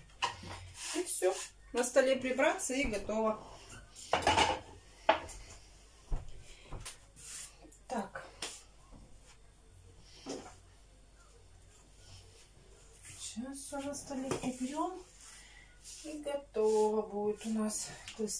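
Dishes and utensils clatter and knock.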